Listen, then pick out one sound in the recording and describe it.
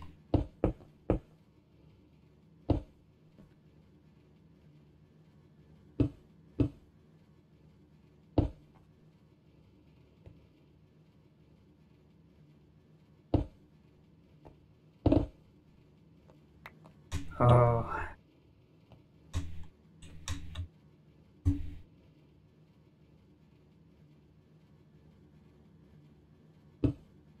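Blocks are placed with short, dull knocks.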